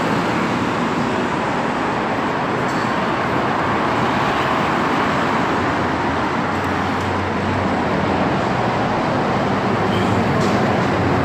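Traffic roars steadily past on a nearby road.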